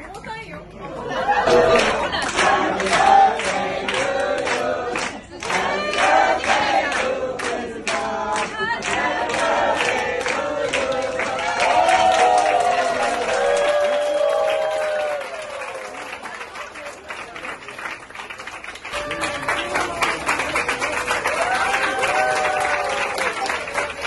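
A crowd of men and women sings together loudly.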